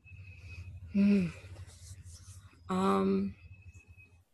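A young woman speaks briefly over an online call.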